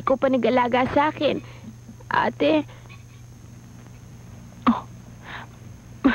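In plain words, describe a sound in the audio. A young woman speaks softly and emotionally up close.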